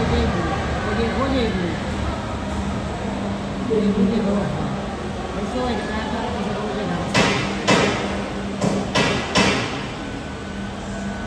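A jet engine hums steadily nearby.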